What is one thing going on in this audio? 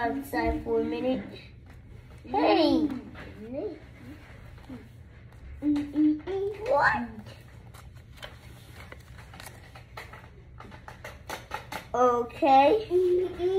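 A young child speaks excitedly close by.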